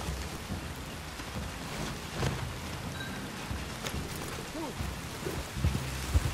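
A horse's hooves thud slowly on soft ground.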